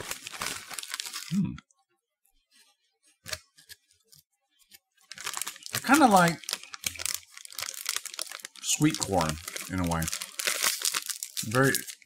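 A plastic wrapper crinkles in a man's hands.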